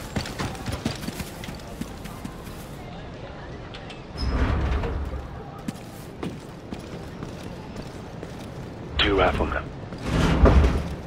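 Boots crunch on dirt and gravel as soldiers move.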